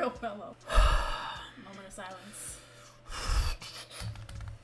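A young woman laughs softly nearby.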